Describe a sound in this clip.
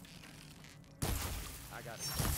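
An arrow is loosed with a sharp twang and whoosh.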